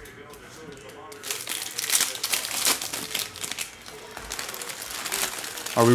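Plastic wrapping crinkles as a pack is torn open.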